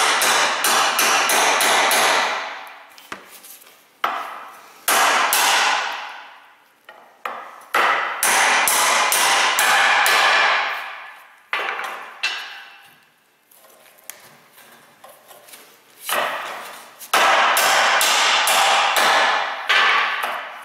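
A hammer strikes a steel punch in quick, ringing metallic blows.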